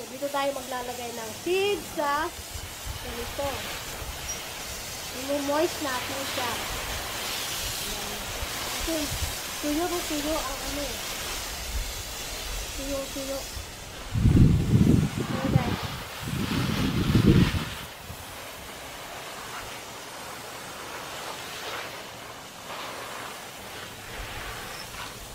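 Water sprays from a hose onto soil.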